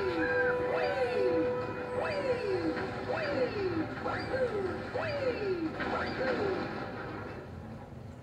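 Short falling game tones chirp over and over from a television.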